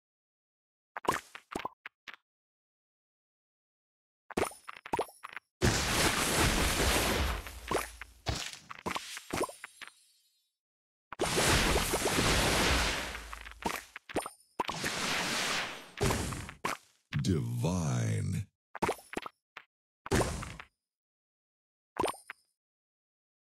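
Game sound effects chime and whoosh as candies match and burst.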